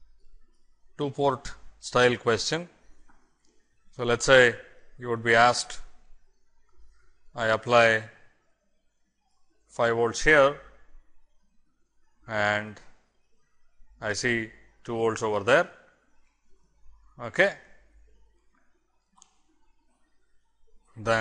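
A man speaks calmly and steadily, explaining, close to a microphone.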